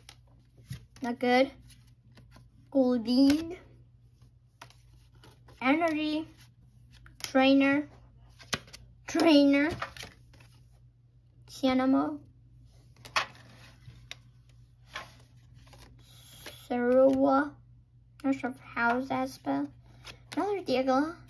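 Playing cards slide and rustle as they are handled.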